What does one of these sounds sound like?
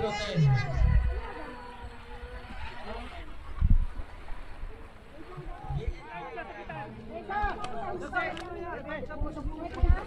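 Several men and women talk and call out with animation nearby, outdoors.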